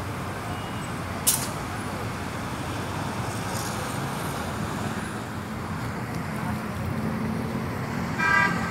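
Gentle waves lap softly against rocks.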